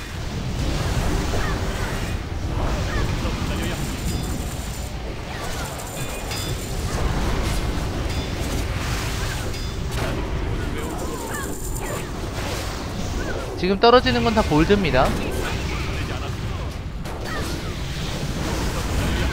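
Game combat effects clash and boom steadily.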